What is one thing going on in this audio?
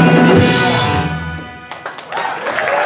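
A band plays loudly and stops.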